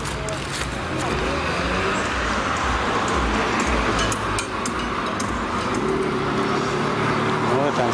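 Cars drive past on a street nearby.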